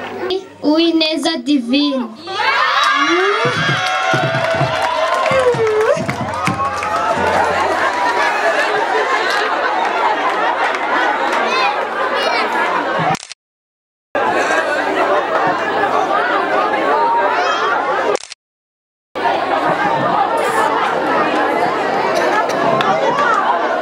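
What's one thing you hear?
A crowd of children and adults cheers and chatters loudly outdoors.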